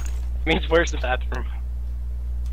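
A young man talks briefly and casually into a close microphone.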